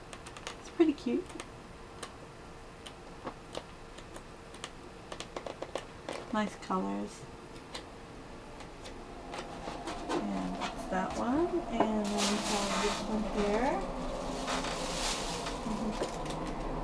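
A woman talks calmly close by.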